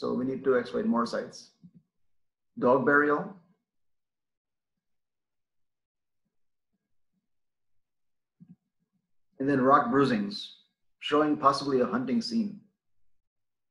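A man speaks calmly through an online call microphone, in short phrases with pauses.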